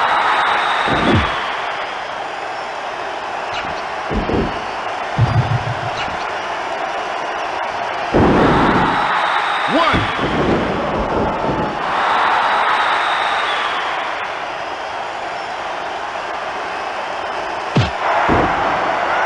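Heavy thuds sound as wrestlers slam onto the mat.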